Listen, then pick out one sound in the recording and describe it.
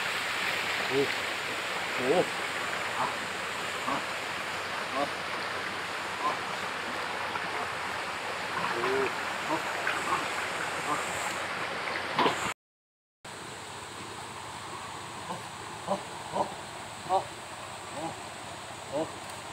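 A stream rushes and gurgles over rocks nearby.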